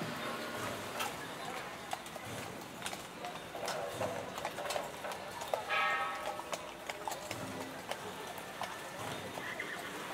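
Horse hooves clop on pavement.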